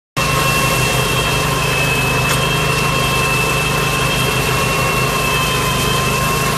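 A machine engine hums steadily close by.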